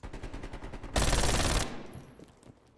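A shotgun blasts with a heavy boom.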